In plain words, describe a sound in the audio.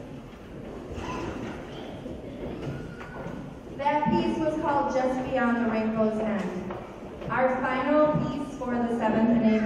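A woman speaks calmly into a microphone over a loudspeaker.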